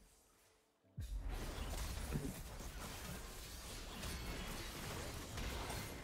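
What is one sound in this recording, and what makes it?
Game battle sounds clash, zap and crackle in quick bursts.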